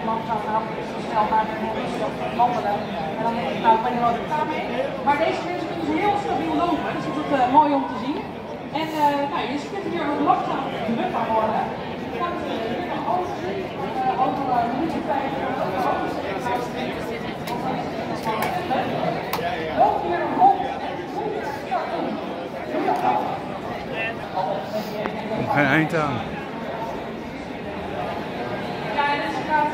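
A crowd of men and women chatters all around, outdoors.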